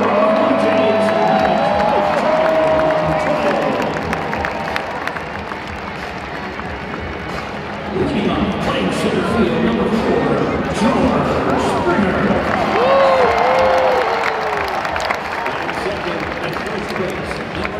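A large crowd chatters and cheers in a large echoing stadium.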